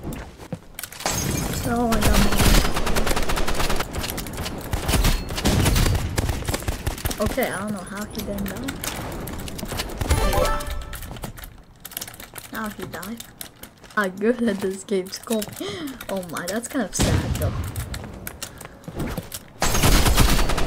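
Rapid gunshots fire in loud bursts.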